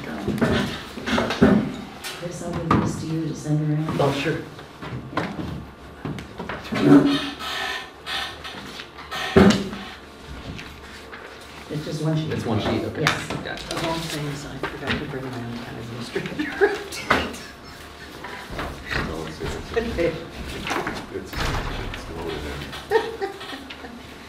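A man speaks calmly, heard through a room microphone.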